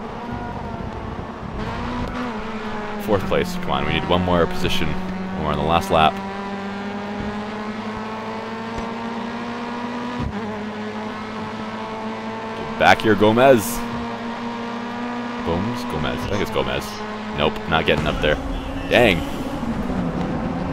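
A racing car engine roars and climbs steadily in pitch as it speeds up.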